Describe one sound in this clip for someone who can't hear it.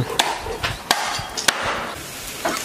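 A knife chops meat on a wooden board.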